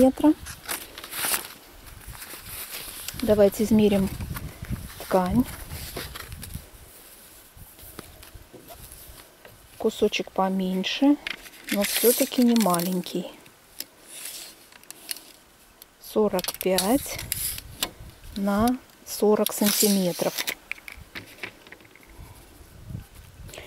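Paper and fabric rustle as they are handled.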